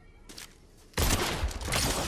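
A rifle fires loud shots in quick succession.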